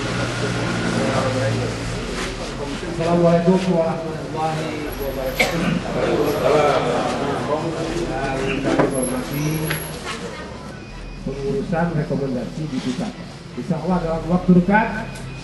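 A man speaks into a microphone over a loudspeaker.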